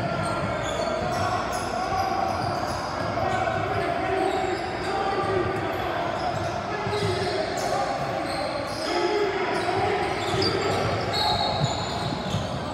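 Sneakers squeak sharply on a wooden court in a large echoing gym.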